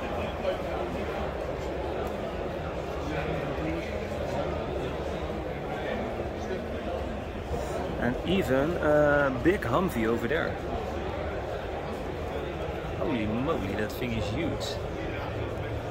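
A crowd chatters steadily in a large indoor hall.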